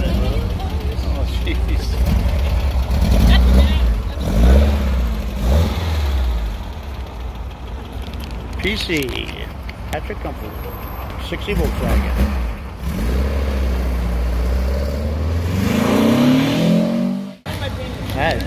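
A car engine idles with a deep, rumbling exhaust.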